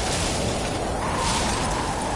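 A laser beam hums steadily as it fires.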